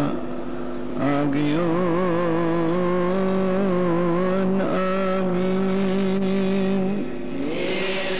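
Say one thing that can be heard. An elderly man chants slowly into a microphone.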